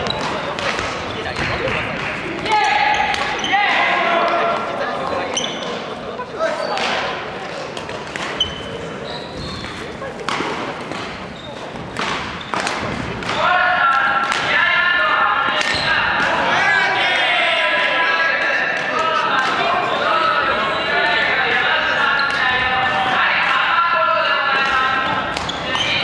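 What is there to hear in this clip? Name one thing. A badminton racket strikes a shuttlecock with sharp pops in a large echoing hall.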